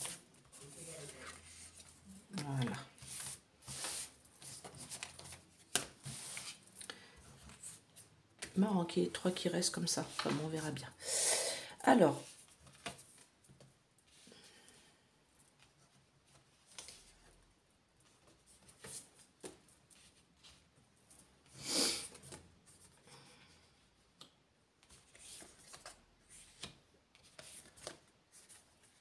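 Cards slide and tap on a cloth-covered table.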